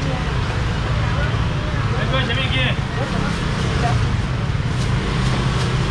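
Plastic bags rustle as fish are packed.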